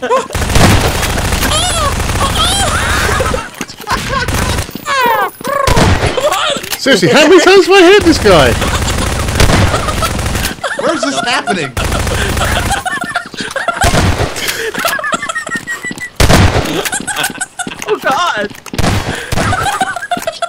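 Gunshots fire in short bursts.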